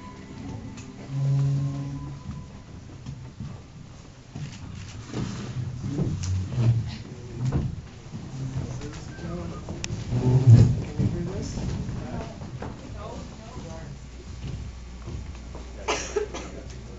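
A man speaks calmly through a microphone in a room with some echo.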